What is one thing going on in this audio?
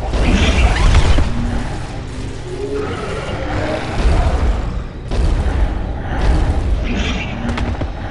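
An energy beam hums with a low drone.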